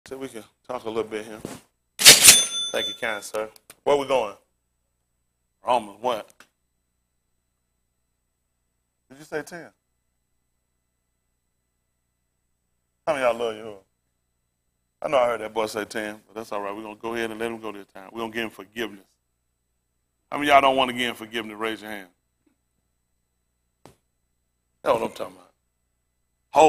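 A man speaks in a lecturing tone through a microphone, with pauses.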